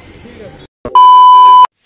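A loud, steady high beep sounds briefly.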